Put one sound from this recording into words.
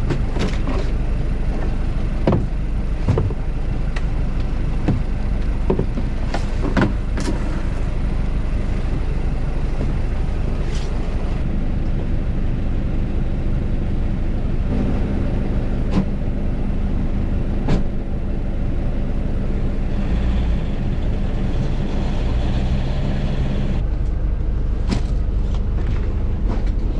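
Plastic crates knock and clatter close by.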